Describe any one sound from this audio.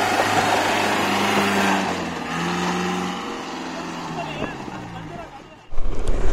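An off-road vehicle's engine revs and strains as it climbs over rocks.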